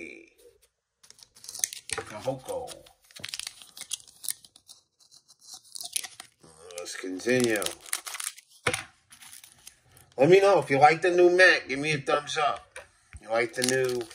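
Foil card packs crinkle and rustle.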